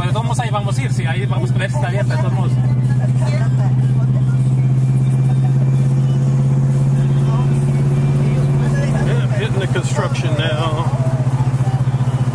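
A car engine hums steadily from inside the car while driving.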